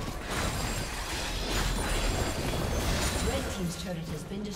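Fantasy game combat effects whoosh, crackle and clash.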